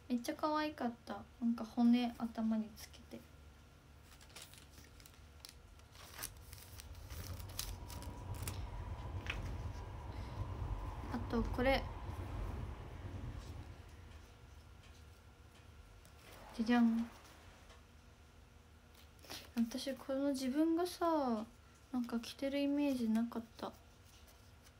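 A young woman speaks softly and brightly, close by, in short bursts.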